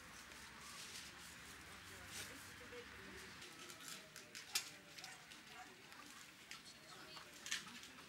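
Chickens cluck softly nearby.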